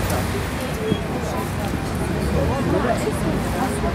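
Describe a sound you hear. Footsteps tap on wet paving stones.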